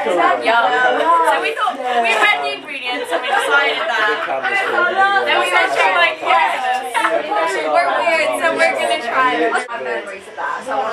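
A second young woman talks close by.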